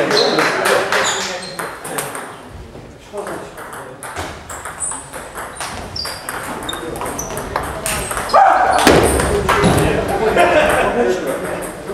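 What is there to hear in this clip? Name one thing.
A table tennis ball clicks back and forth on a table and paddles.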